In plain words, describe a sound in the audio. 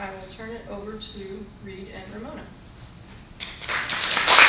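A woman speaks calmly into a microphone in a room.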